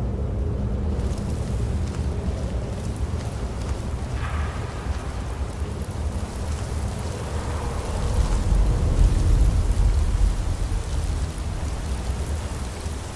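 Water rushes and splashes steadily nearby.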